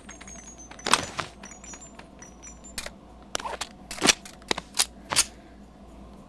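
A pistol clicks and clacks as it is handled.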